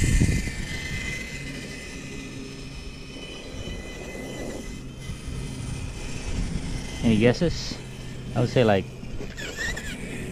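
Small tyres roll over rough asphalt.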